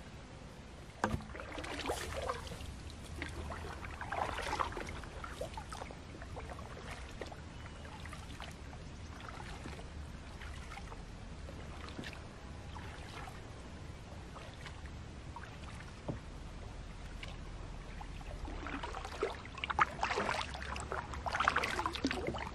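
A paddle splashes and swishes through water close by.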